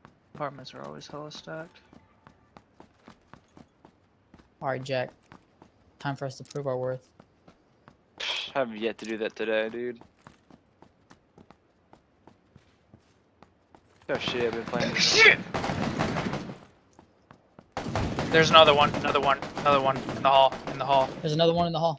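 Footsteps tread quickly on a hard floor and stairs.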